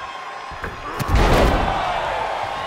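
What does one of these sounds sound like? A wrestler crashes onto an opponent with a heavy thud.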